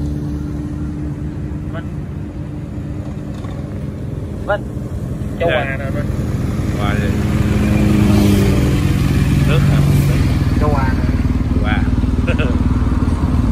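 Motorcycles drive past on a road.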